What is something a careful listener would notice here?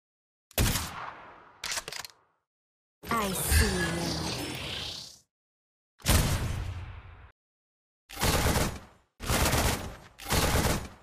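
Sci-fi energy gunshots blast in a video game.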